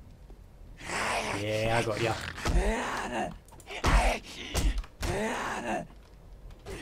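A creature snarls and groans close by.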